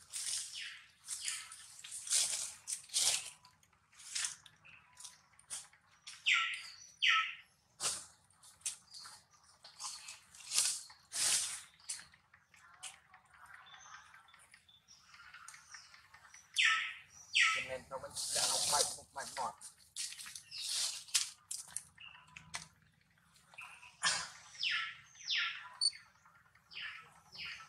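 A baby monkey squeals and cries in short, high-pitched bursts.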